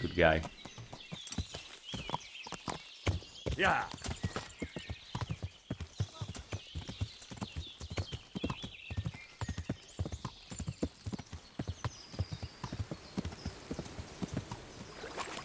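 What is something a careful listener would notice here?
A horse gallops, hooves pounding steadily on a dirt path.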